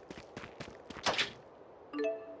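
A chest opens with a sudden whoosh.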